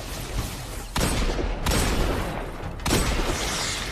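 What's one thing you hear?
Gunshots from a pistol ring out.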